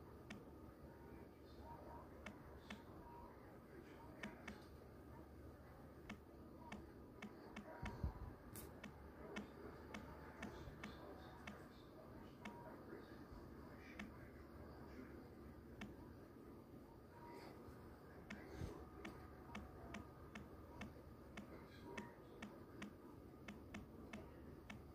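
Fingertips tap quickly on a phone's touch keyboard, with soft clicks.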